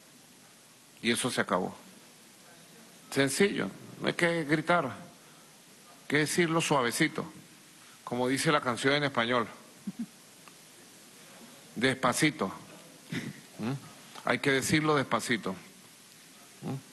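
A man speaks calmly and deliberately into a microphone, in short phrases with pauses.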